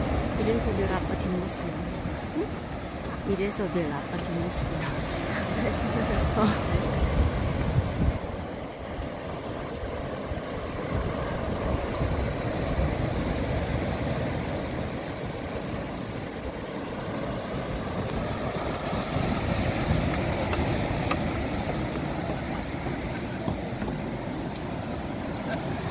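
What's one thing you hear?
Waves crash and surge against rocks nearby.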